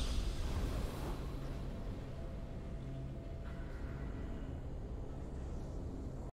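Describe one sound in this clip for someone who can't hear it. A triumphant tune plays softly.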